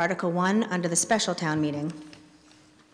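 A woman speaks calmly into a microphone, heard through a loudspeaker in a large echoing hall.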